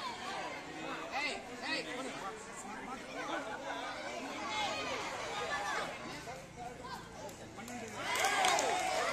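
A crowd of children shouts and cheers outdoors.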